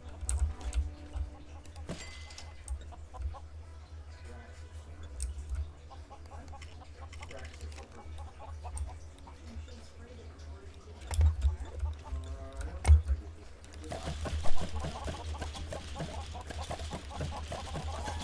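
A video game's magic tool zaps and sparkles.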